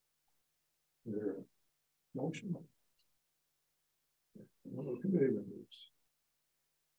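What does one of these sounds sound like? A man speaks calmly in short bursts with pauses.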